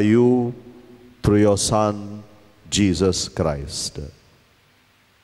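An elderly man chants in song through a microphone in a large echoing hall.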